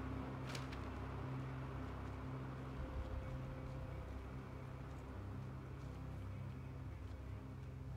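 Footsteps crunch steadily on loose gravel.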